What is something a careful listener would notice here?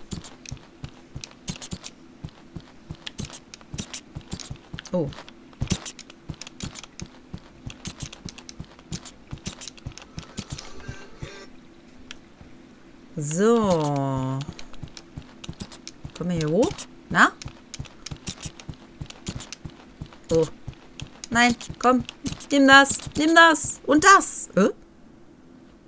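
Small webbed feet patter quickly.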